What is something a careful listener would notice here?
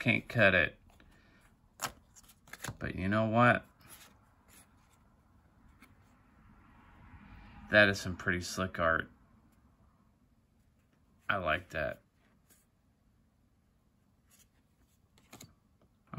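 Stiff playing cards rustle and slide softly against each other.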